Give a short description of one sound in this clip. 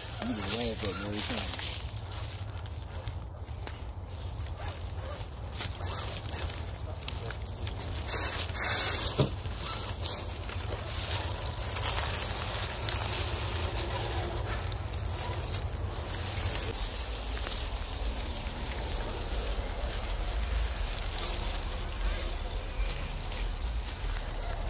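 A small electric motor whirs as a toy truck crawls over rough ground.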